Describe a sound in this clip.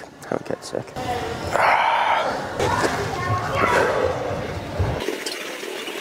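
A young man talks with animation in an echoing hall.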